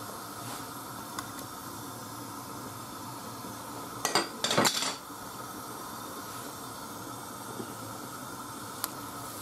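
Water simmers and bubbles softly in a pot.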